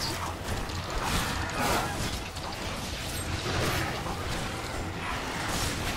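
Swords slash and strike in a fight.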